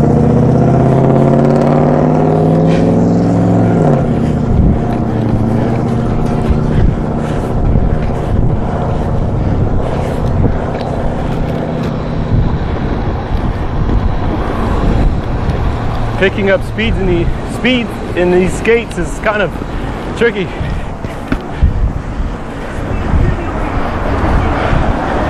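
Inline skate wheels roll and rumble over rough concrete.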